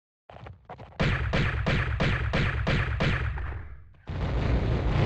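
Pistol shots fire in rapid succession.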